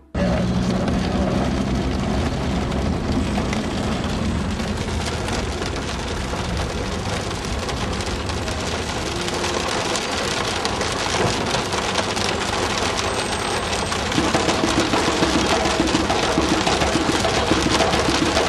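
Rain patters steadily on a car's windows and roof.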